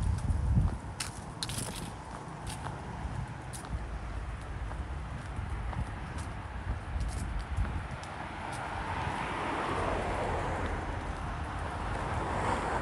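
Footsteps crunch on a paved path strewn with dry leaves.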